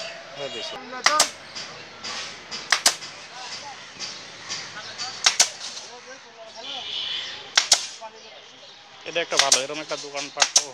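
A pneumatic staple gun fires sharp snaps into wood.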